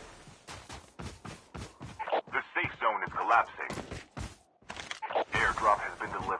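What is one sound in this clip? Footsteps thud quickly on grass.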